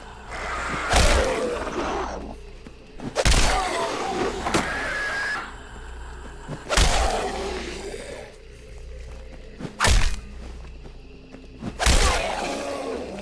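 An axe strikes flesh with heavy thuds.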